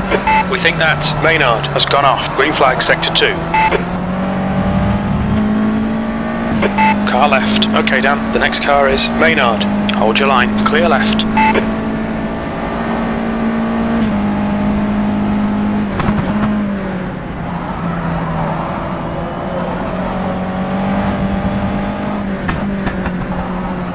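A racing car engine drones steadily, shifting pitch as the car changes gear.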